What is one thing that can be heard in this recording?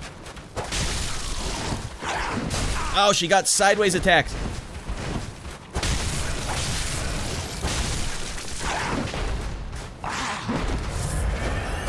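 Blades slash and strike with heavy thuds.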